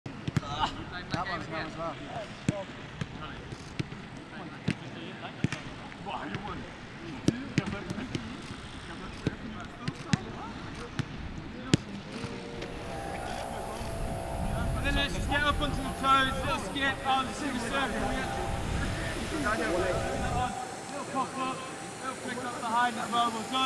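Young men call out and chatter outdoors.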